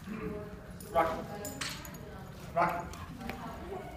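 A dog barks loudly a couple of times.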